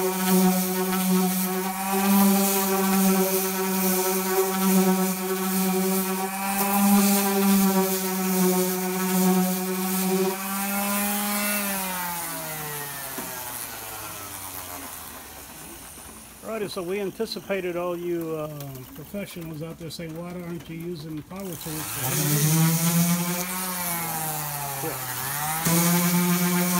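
An electric orbital sander whirs steadily against a surface, winds down and later starts up again.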